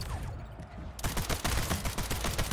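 Rapid gunshots crack in quick succession.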